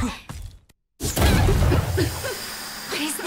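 A dull boom bursts as smoke spreads.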